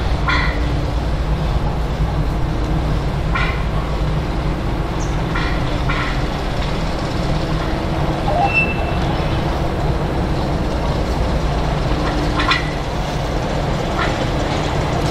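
A diesel locomotive engine idles nearby with a low, steady rumble.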